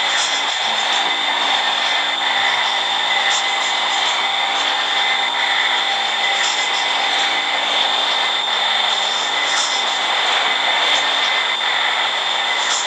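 A subway train rumbles and rattles steadily along the tracks through a tunnel.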